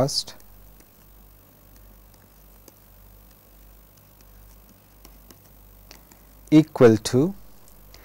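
A pen taps and scratches on a tablet.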